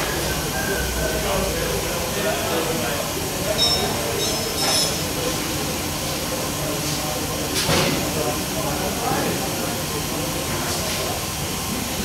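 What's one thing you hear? Liquid pours through a funnel into a plastic bottle.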